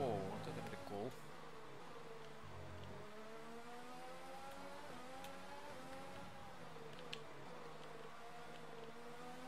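A racing car engine whines at high revs, rising and falling as the gears shift.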